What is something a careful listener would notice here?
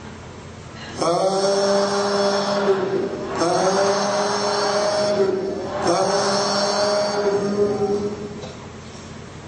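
Several men chant together in unison, in three long phrases.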